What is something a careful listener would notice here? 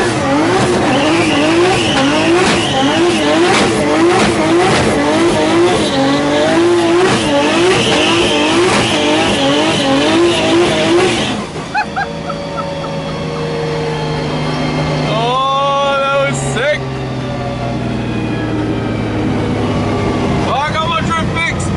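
A race car engine roars and revs inside the cabin.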